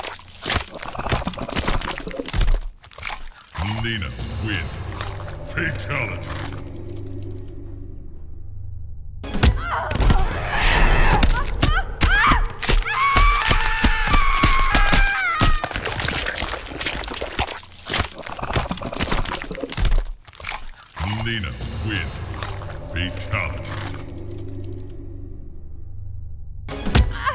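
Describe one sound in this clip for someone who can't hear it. Wet flesh squelches and tears.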